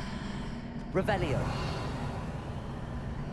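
A magic spell whooshes with a rising shimmer.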